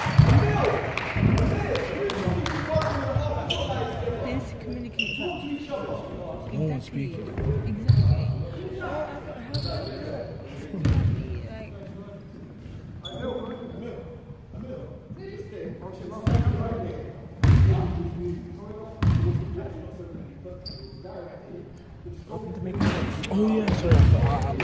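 Young men shout and call out across an echoing hall.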